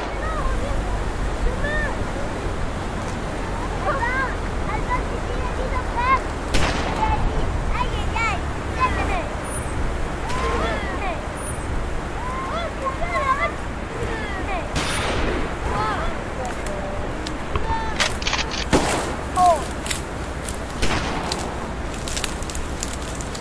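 Tall grass rustles and swishes as children push through it.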